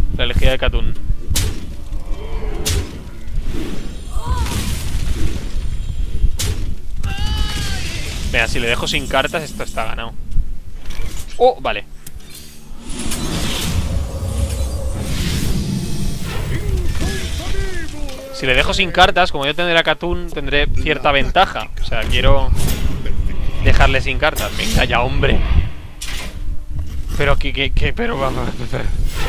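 Electronic game sound effects chime, whoosh and clash.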